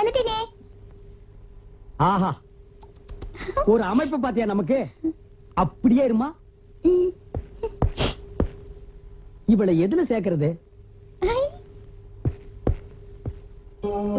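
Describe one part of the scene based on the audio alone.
A woman speaks and laughs playfully.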